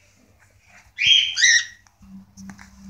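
A bird chirps in short, shrill calls close by.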